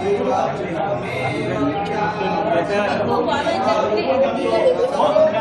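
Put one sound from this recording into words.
A crowd of men and women chants together nearby.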